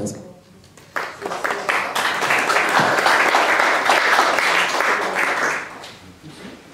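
A small audience applauds.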